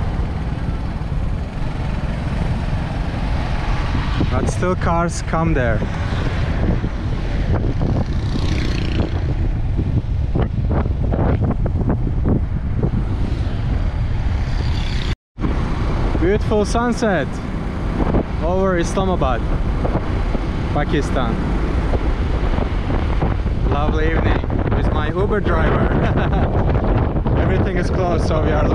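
Wind rushes loudly past a moving motorbike.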